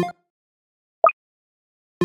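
A short bright chime rings out.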